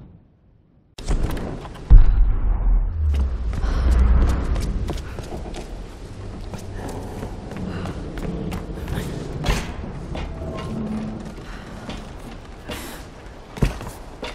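Footsteps thud quickly on stone and wooden boards.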